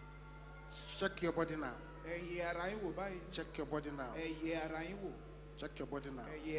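A crowd of men and women pray aloud together.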